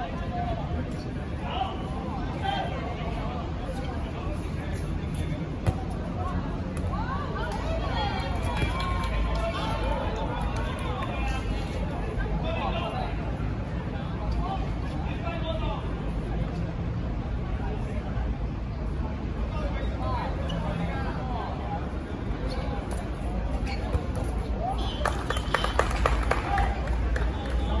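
Young people shout and call out across an outdoor court.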